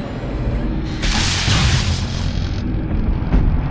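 A heavy creature pounds against thick glass with a loud crash.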